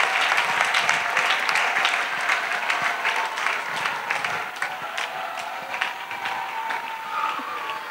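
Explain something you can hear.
A crowd of children claps outdoors.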